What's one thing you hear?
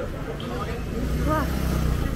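A motorbike engine rumbles close by.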